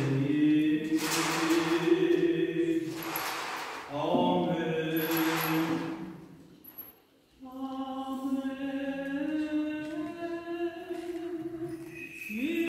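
A man chants slowly with long held notes in a large echoing hall.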